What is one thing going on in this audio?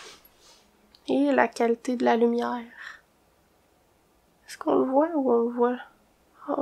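A young woman speaks softly and close up.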